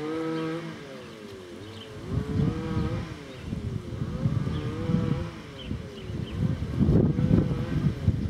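A porch swing creaks in a slow, rhythmic squeal as it rocks back and forth.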